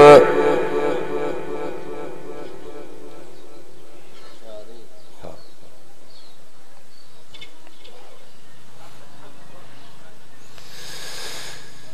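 A man chants through a loudspeaker microphone, with a long echo.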